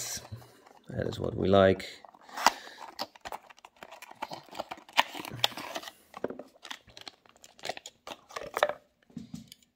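A small cardboard box is opened with light scrapes and taps.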